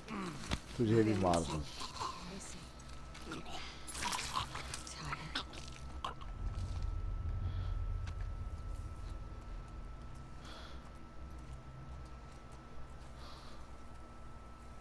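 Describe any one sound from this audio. Tall grass rustles as a person creeps through it.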